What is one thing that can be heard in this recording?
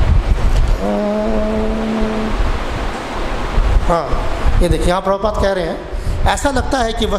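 A man chants and speaks into a microphone in a slow, reciting voice.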